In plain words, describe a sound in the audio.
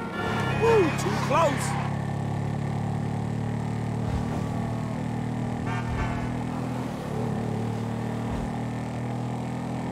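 A motorbike engine hums steadily as the bike rides along a street.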